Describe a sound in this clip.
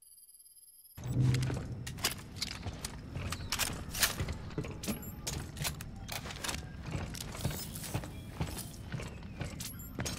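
Heavy footsteps clank on a hard metal floor.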